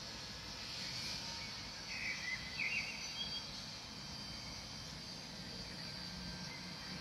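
Wind blows steadily outdoors and rustles tree leaves.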